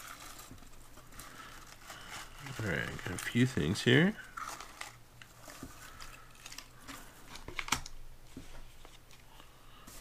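Shredded paper rustles as hands dig through it.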